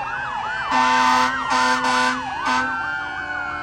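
A loud truck air horn blasts in short bursts.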